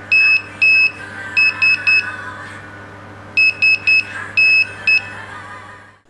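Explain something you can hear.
An electronic buzzer beeps short and long tones in a Morse code rhythm.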